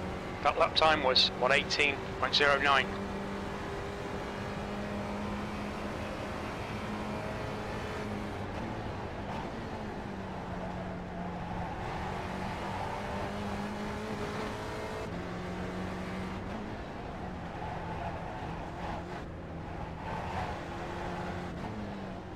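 A racing car engine drones steadily, its pitch rising and falling with gear changes.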